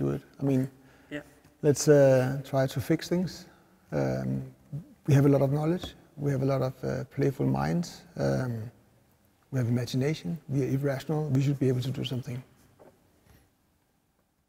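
A man talks calmly and with animation close by.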